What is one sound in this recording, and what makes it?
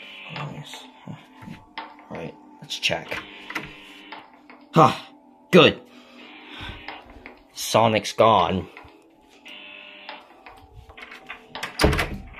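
A metal door handle clicks and rattles.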